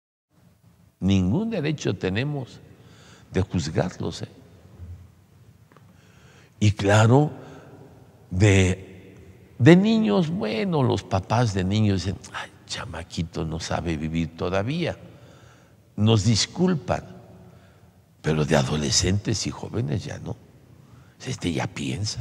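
An elderly man speaks with animation into a microphone in a reverberant hall.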